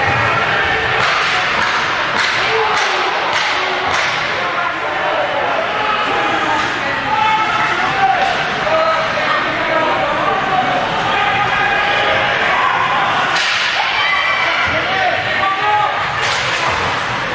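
Hockey sticks clack against the puck and boards.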